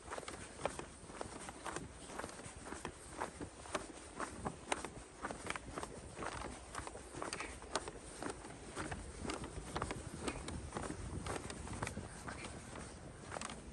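Footsteps crunch steadily on packed snow.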